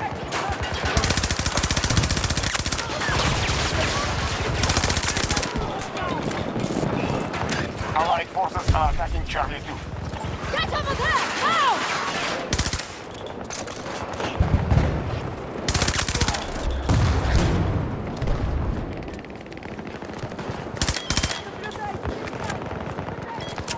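A rifle fires in rapid bursts at close range.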